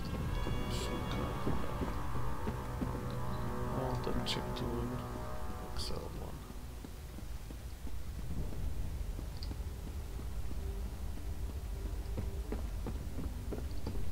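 Footsteps thud quickly on wooden boards and stone.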